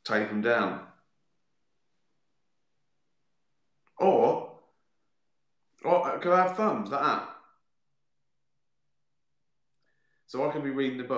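A middle-aged man speaks calmly into a microphone, in short bursts with pauses.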